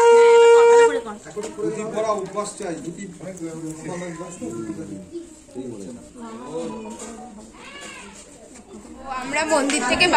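A middle-aged woman talks quietly nearby.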